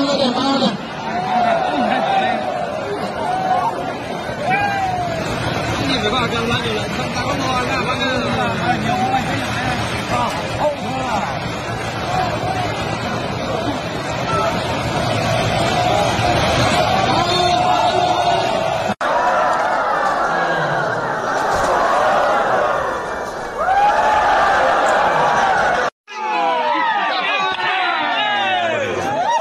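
A large outdoor crowd shouts and cheers.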